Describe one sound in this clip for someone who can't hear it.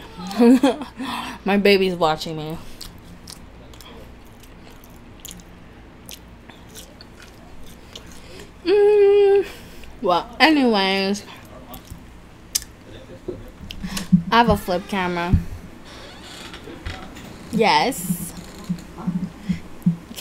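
Crispy food crunches as a young woman chews close to a microphone.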